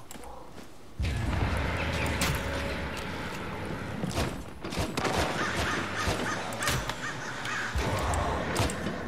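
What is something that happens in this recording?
A rifle fires repeatedly.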